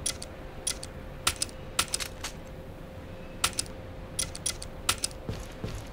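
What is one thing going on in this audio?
Menu buttons click sharply, several times.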